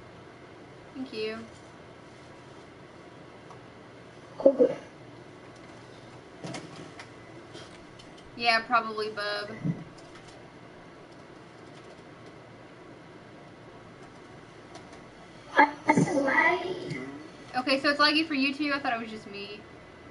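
A young woman talks with animation into a microphone, in short bursts.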